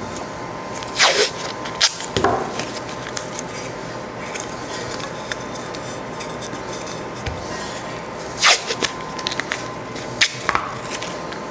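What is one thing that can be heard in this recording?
Small objects knock and click against a hard surface.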